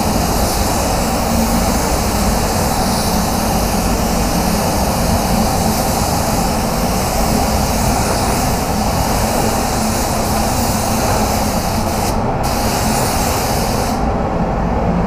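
A spray gun hisses steadily as it sprays paint.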